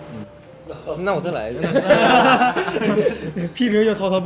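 Several young men laugh loudly together.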